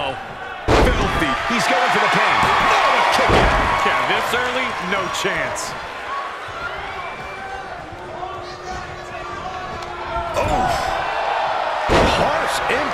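Heavy thuds of bodies slam onto a wrestling mat.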